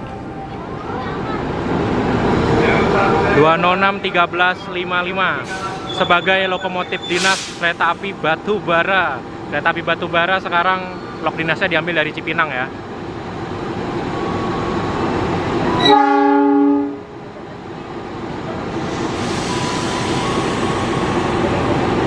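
A diesel locomotive engine rumbles as it rolls slowly past.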